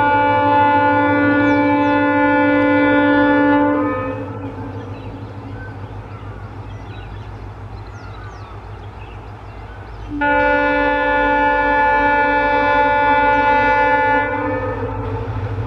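A train horn blares loudly in long, steady blasts.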